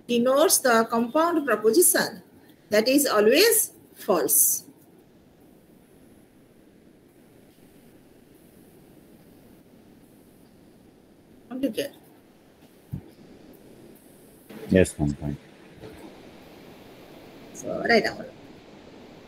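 A young woman speaks calmly over an online call, in short bursts with long pauses.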